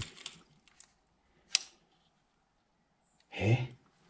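A plastic holder clicks and rattles in a hand.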